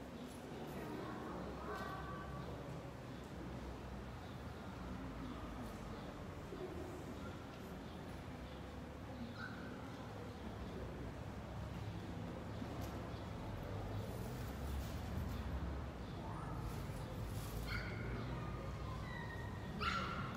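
A man speaks calmly through a loudspeaker, echoing in a large hall.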